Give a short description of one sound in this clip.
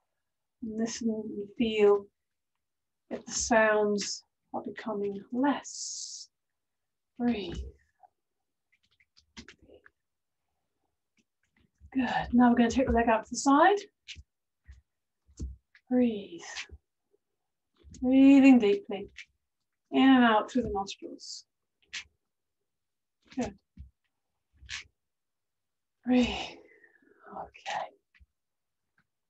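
A woman speaks calmly through a microphone, in short bursts.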